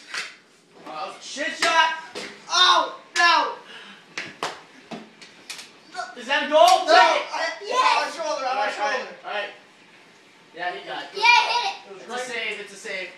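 Children shout excitedly nearby.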